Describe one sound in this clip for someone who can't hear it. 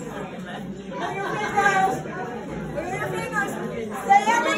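A woman sings with animation nearby.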